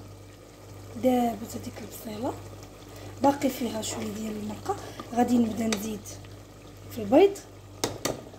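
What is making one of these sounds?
A spoon scrapes and stirs food in a metal pot.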